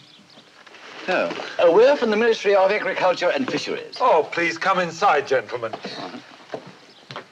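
An elderly man speaks cheerfully.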